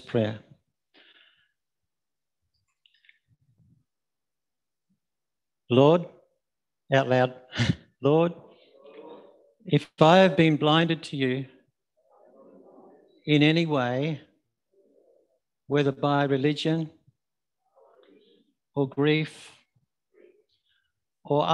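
An older man speaks calmly and clearly, with pauses.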